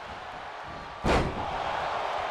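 A body slams hard onto a wrestling ring mat with a loud thud.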